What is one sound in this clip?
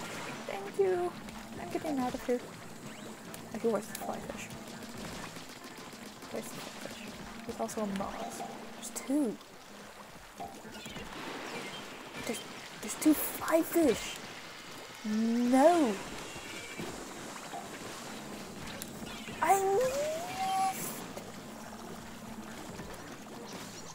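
Wet splattering shots fire in quick bursts.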